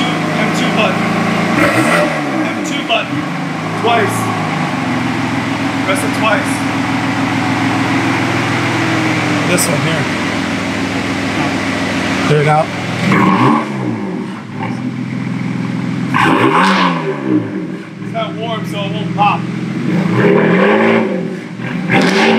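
A BMW M3's twin-turbo inline-six idles through a performance exhaust.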